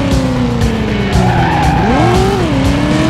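Tyres screech in a skid.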